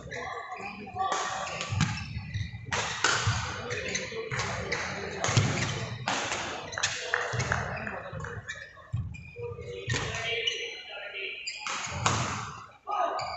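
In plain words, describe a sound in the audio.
Badminton rackets hit a shuttlecock back and forth in an indoor hall.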